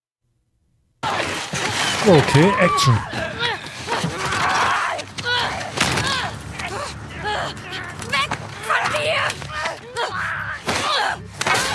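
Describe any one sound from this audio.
A creature snarls and shrieks.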